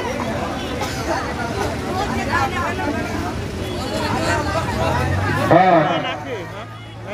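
Many men chatter loudly nearby in a crowd.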